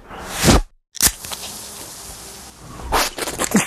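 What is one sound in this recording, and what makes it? A can pops open and fizzes.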